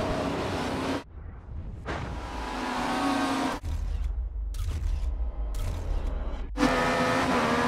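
Engines of several racing cars roar past at a start.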